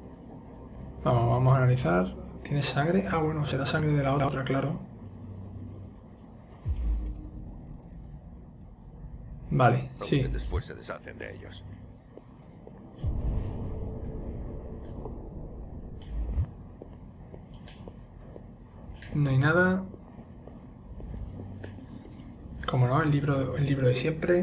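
A young man speaks calmly and quietly, in short phrases.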